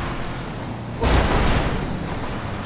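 A truck crashes into a car with a loud bang.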